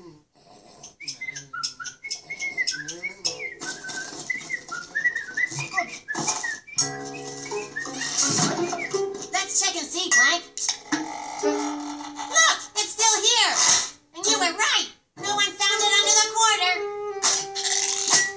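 A cartoon boy speaks with animation, heard through a television speaker.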